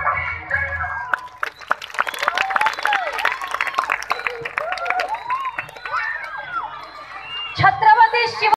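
A crowd of men shouts and cheers loudly nearby.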